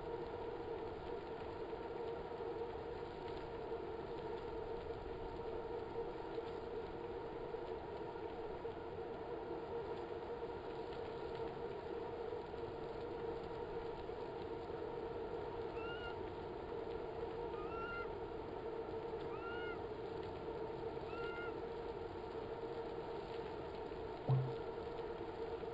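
A bike trainer whirs steadily.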